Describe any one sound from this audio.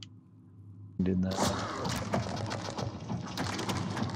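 Wet flesh squelches as a hand grips a fleshy limb.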